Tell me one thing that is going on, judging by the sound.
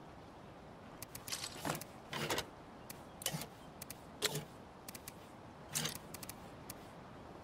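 Short soft interface clicks and swishes sound as menu items are selected.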